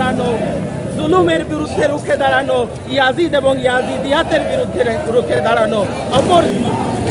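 A man shouts a chant close by.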